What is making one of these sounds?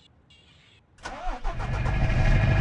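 A diesel semi truck engine starts up.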